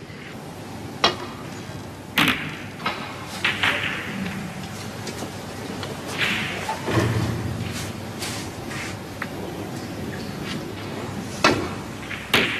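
A snooker cue strikes the cue ball with a sharp click.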